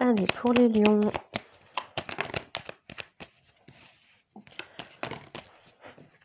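A card is laid down softly on a cloth.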